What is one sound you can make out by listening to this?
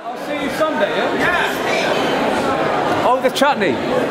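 A man talks close by over the crowd.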